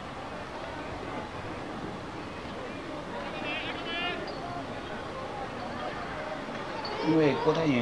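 A crowd murmurs in a stadium.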